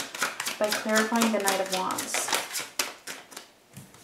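Playing cards riffle and flick during shuffling.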